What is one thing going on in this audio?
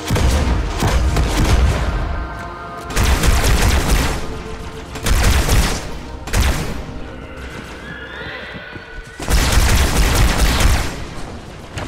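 Energy weapons fire in loud, crackling bursts.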